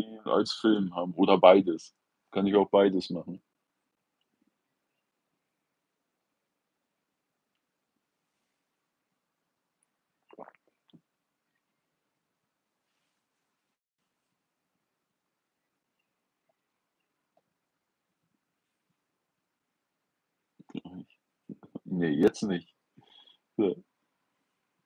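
An older man speaks calmly and close by, in short bursts with long pauses.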